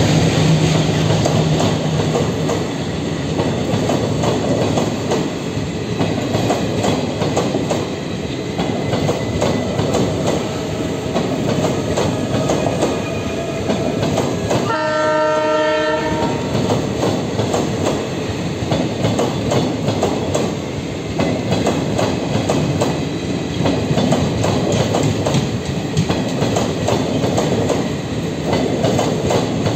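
A long passenger train rumbles past close by, its wheels clattering rhythmically over the rail joints.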